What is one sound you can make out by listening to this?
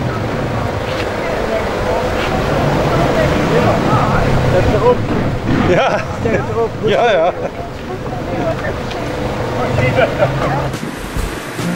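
Mobility scooters hum as they roll past.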